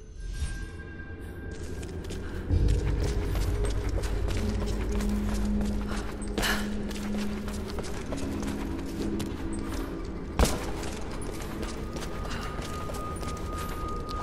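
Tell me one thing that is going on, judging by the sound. Footsteps crunch on gravel.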